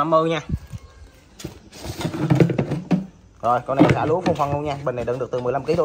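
A plastic cap is unscrewed from a tank.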